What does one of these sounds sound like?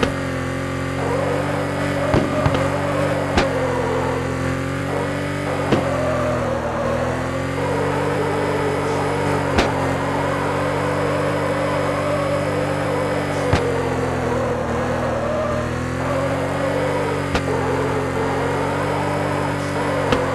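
Tyres screech as a car skids through turns.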